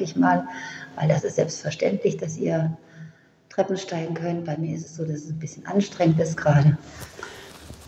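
A middle-aged woman speaks calmly and close up through a phone microphone.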